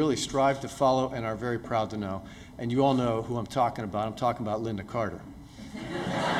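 A middle-aged man speaks calmly through a microphone in an echoing hall.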